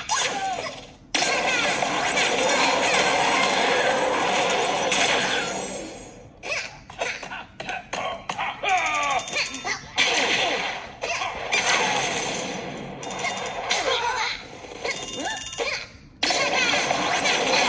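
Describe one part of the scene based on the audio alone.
A video game plays upbeat music through a small tablet speaker.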